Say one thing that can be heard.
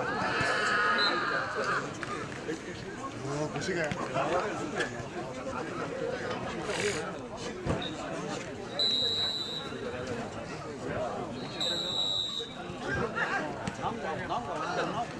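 Young men and men chatter and call out outdoors.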